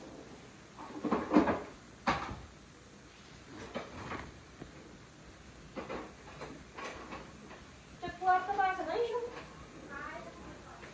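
A drawer slides open and shut.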